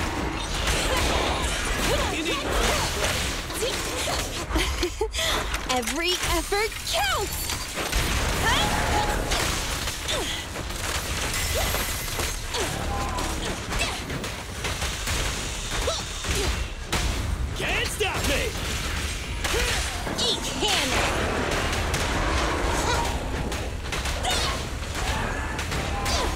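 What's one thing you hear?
Game combat effects crash and zap in rapid, dense bursts.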